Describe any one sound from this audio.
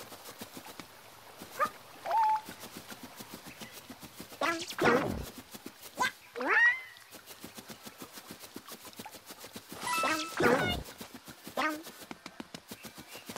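Light footsteps patter quickly across soft grass.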